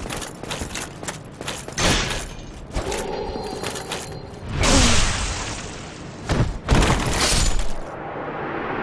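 Metal weapons clash and clang in a fight.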